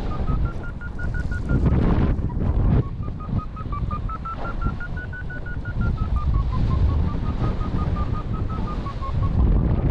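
Wind rushes and buffets loudly past a paraglider in flight.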